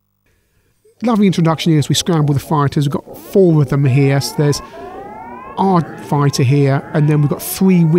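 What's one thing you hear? Loud, punchy electronic game music plays with a pounding bass beat.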